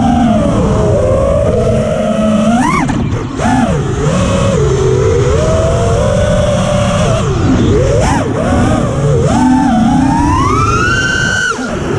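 Drone motors whine close by, rising and falling in pitch.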